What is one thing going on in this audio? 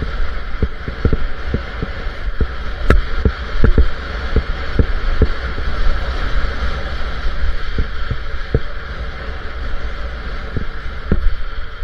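Wind buffets a helmet microphone during a fast descent.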